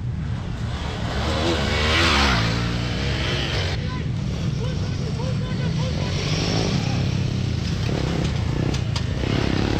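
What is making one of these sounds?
Another dirt bike engine revs in the distance.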